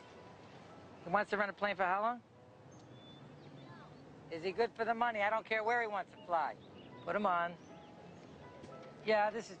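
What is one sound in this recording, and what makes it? A man speaks on a phone nearby.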